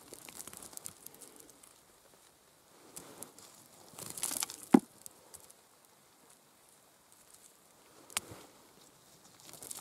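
Fingers scrape and crumble dry soil and small stones up close.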